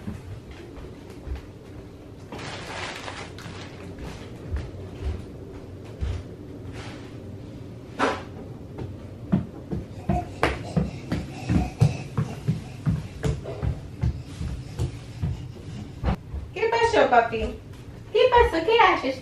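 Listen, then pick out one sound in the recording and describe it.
Bare feet step softly across a wooden floor.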